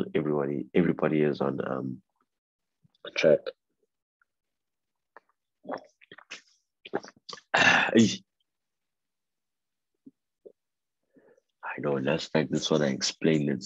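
A man speaks over an online call, in a calm, explaining voice.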